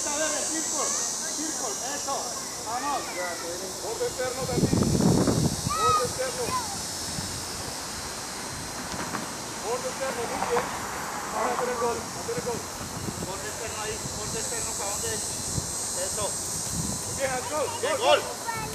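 Young children shout and call out outdoors.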